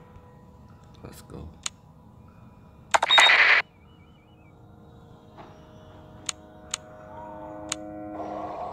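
Game menu buttons click sharply now and then.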